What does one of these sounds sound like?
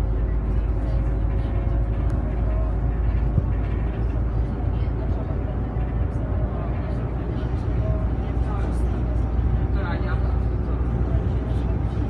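Tyres roll along a road.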